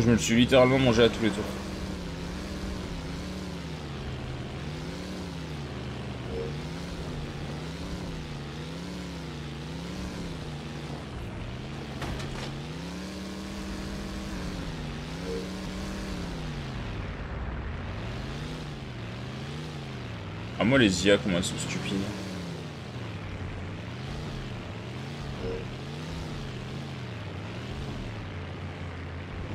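A car engine drones steadily, rising and falling in pitch.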